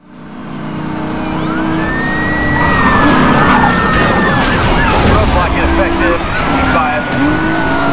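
A sports car engine roars at high speed.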